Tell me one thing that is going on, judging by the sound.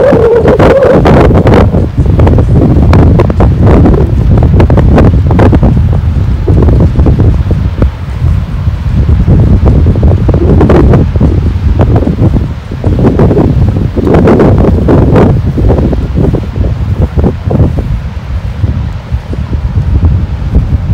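Strong wind buffets and roars outdoors.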